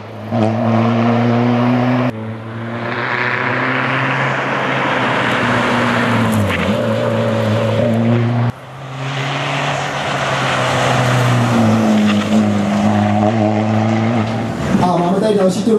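A rally car races past at full throttle.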